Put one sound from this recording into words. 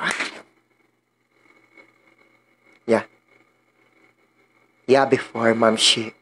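A young man speaks with animation into a close microphone, in short bursts.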